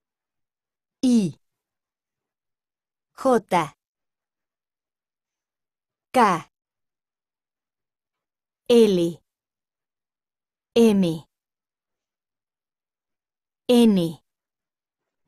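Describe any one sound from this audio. A woman reads out short single words one at a time over an online call, with pauses between them.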